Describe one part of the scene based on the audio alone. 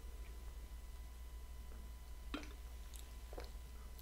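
A woman drinks from a bottle.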